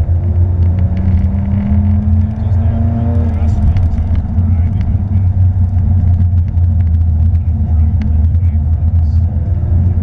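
A car engine drones loudly from inside the cabin, rising in pitch as the car speeds up.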